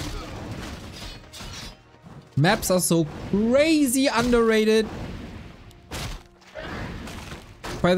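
Swords clash as small groups of fighters battle.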